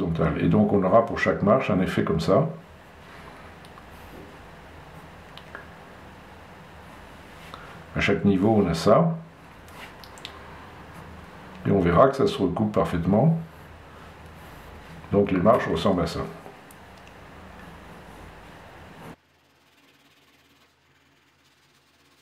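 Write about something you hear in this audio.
A pen scratches lightly on paper.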